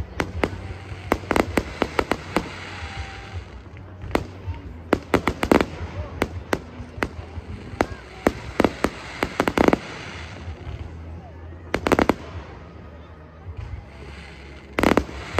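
Fireworks bang and crackle in rapid bursts nearby.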